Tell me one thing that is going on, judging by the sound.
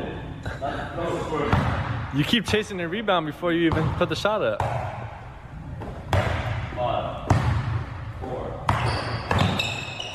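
A basketball bounces on a hard indoor court.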